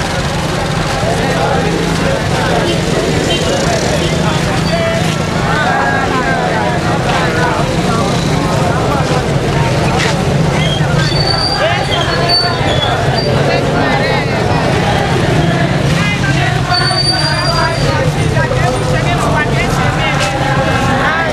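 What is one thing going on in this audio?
A large crowd of men and women murmurs and chatters outdoors.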